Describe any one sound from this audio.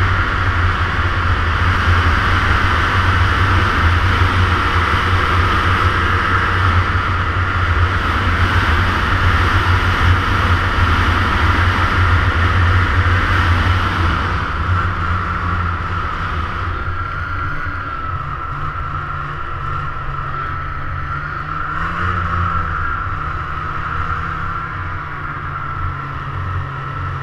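A snowmobile engine drones steadily up close.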